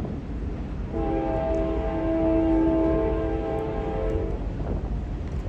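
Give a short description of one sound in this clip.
A train horn blows long and steady in the distance.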